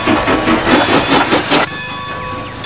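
A steam locomotive chuffs rhythmically as it pulls away.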